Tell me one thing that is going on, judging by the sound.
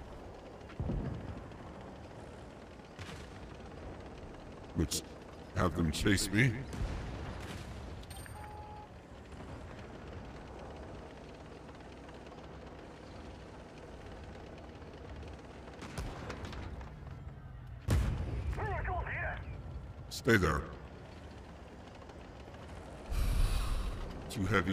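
Tank cannons fire with loud booms.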